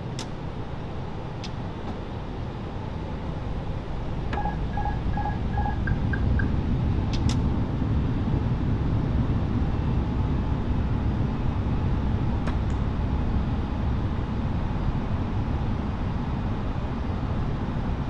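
Aircraft engines rumble steadily, growing slightly louder.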